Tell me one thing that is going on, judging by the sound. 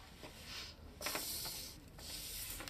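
A sheet of paper slides across a table.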